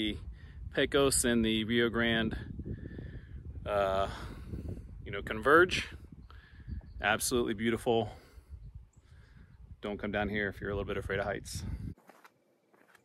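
A man talks calmly and close to the microphone.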